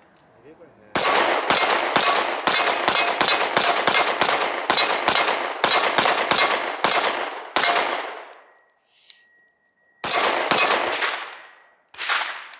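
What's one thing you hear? A pistol fires many shots in rapid bursts, echoing across open ground.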